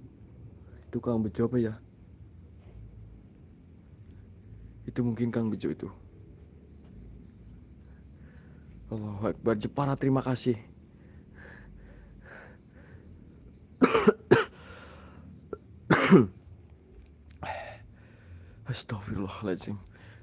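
A man speaks close by in short, hushed bursts.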